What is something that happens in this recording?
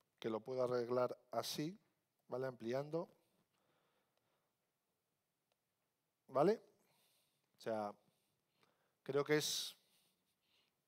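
A man speaks into a microphone in short phrases with pauses.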